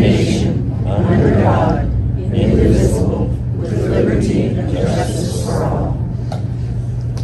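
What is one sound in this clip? A woman speaks into a microphone, heard through a loudspeaker in an echoing hall.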